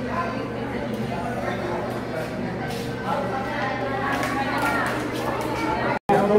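A crowd of men, women and children murmurs and chatters in an echoing room.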